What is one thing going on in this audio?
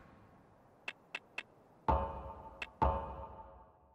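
Short menu blips sound.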